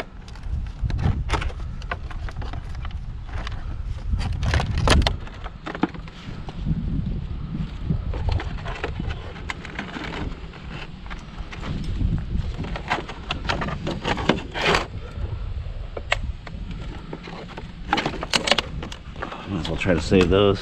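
Wind rumbles low against the microphone outdoors.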